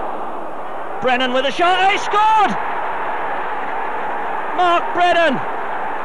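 A large crowd roars and cheers loudly.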